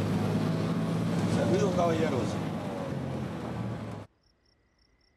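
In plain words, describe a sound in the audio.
A car engine rumbles with road noise inside a moving vehicle.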